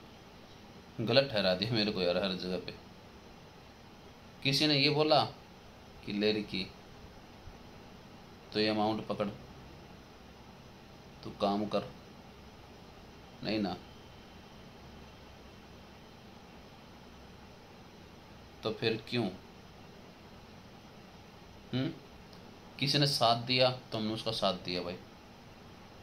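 A man speaks calmly and close by, in short phrases with pauses.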